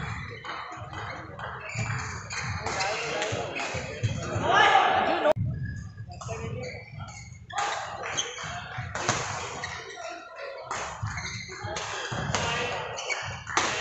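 A badminton racket strikes a shuttlecock in an echoing indoor hall.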